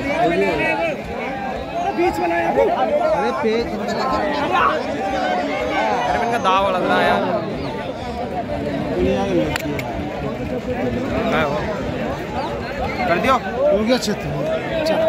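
Men nearby talk and shout with animation.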